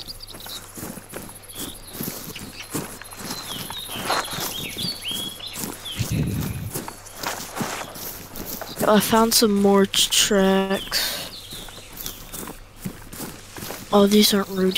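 Leaves and branches rustle and swish as someone pushes through dense brush.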